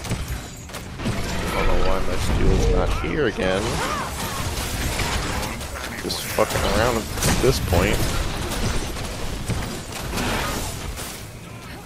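Magic blasts boom and crackle in a fight.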